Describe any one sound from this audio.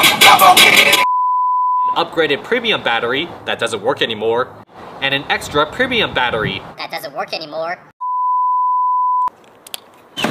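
A steady test tone beeps.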